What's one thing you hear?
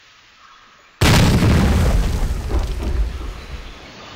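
A firework bursts with a loud bang.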